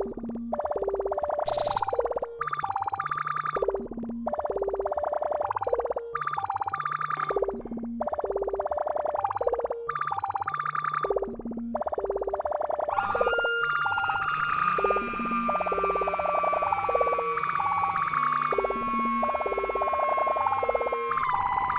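A drum machine plays a looping electronic beat with a pulsing bass line.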